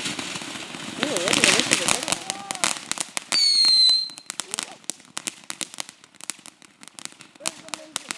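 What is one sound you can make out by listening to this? Firework sparks crackle and pop rapidly.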